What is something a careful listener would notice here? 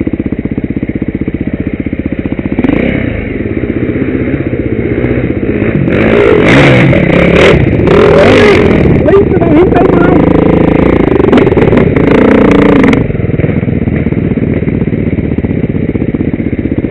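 A dirt bike engine idles and putters close by, loud and throbbing.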